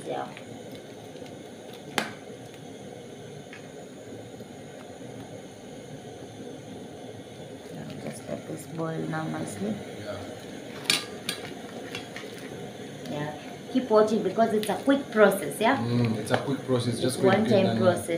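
Water simmers and bubbles in a pan.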